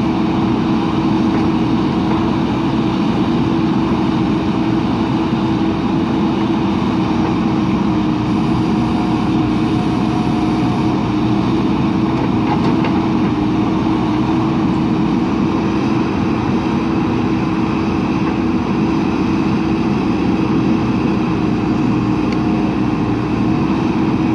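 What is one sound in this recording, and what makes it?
A diesel backhoe engine rumbles steadily nearby.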